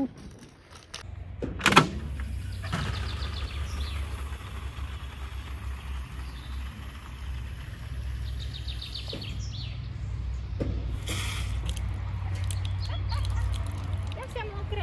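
Water gushes from a tap and splashes into a plastic canister.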